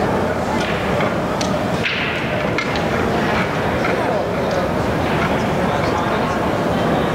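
Indistinct chatter echoes through a large hall.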